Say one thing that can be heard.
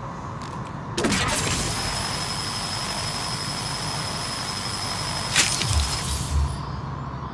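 A laser gun fires a loud, hissing energy beam.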